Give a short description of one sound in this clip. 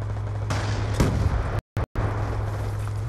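An explosion booms nearby and echoes away.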